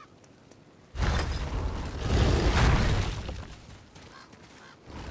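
A heavy wooden door grinds and rumbles open.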